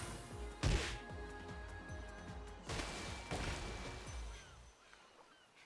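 Heavy blows and whooshing impacts land in quick succession.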